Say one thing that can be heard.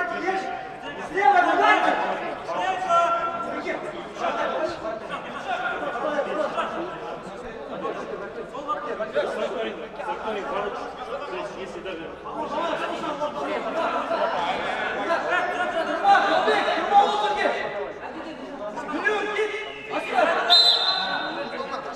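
Young men shout and argue with one another in a large echoing hall.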